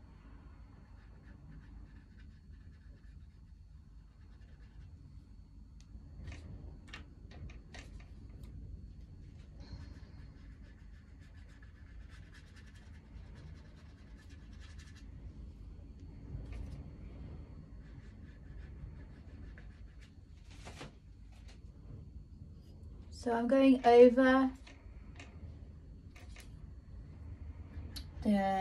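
A brush taps and scrapes lightly on paper.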